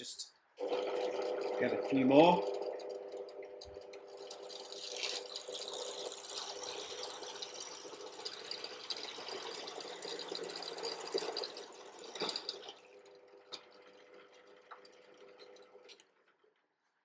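A drill press motor hums steadily.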